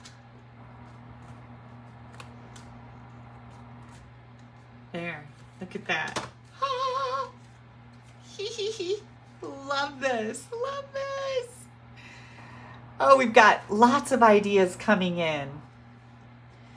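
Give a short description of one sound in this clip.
Stiff paper card rustles and taps as it is handled.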